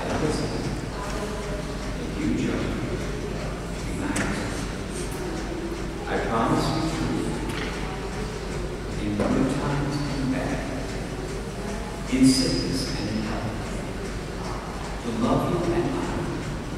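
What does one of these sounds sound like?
A man speaks calmly and slowly in a large echoing hall, some way off.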